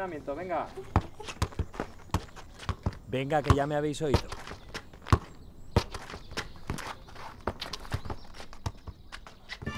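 A ball thuds as a boy kicks it on paving.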